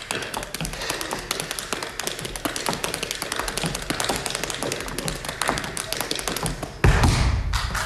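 Tap shoes click rapidly on a wooden stage floor.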